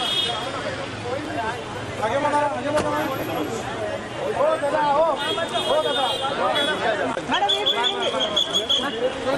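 A crowd of men and women chatter and call out close by.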